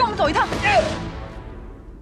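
A man cries out in pain, close by.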